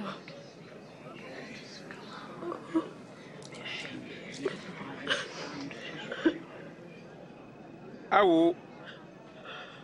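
A young woman sobs and weeps.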